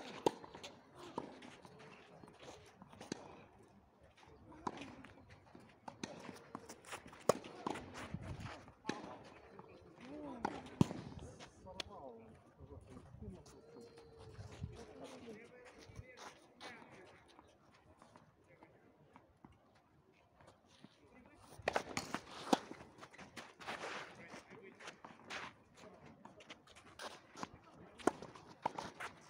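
Tennis balls pop off rackets in a rally outdoors.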